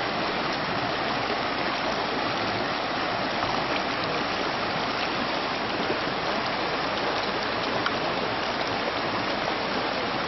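A shallow river rushes and splashes steadily over rocks.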